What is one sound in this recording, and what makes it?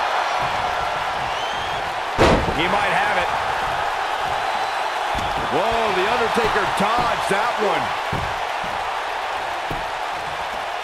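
A large crowd roars and cheers steadily in a big echoing arena.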